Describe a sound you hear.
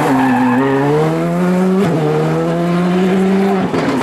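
Tyres spray loose gravel as a rally car slides through a bend.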